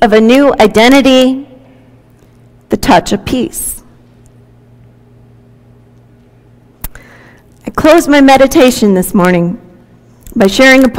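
A woman reads aloud calmly into a microphone, with pauses.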